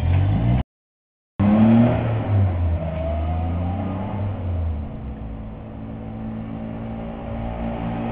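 A small three-wheeler engine putters close by, then fades as it pulls away.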